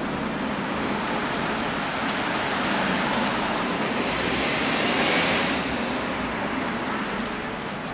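A car drives past close by on the street.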